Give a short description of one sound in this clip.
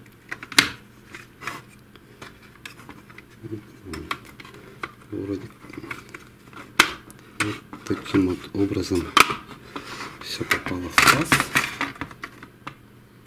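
Plastic parts click and rattle as hands handle a printer unit.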